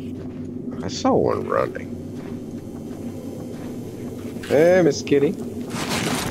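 A young man speaks briefly into a close microphone.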